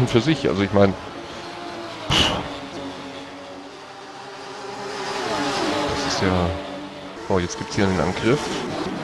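Racing car engines roar and rev up and down through gear changes.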